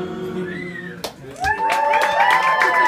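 A woman blows out candles with a short puff of breath.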